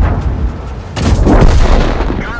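A large explosion roars and rumbles.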